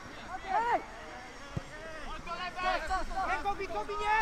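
A football is kicked on a grass pitch.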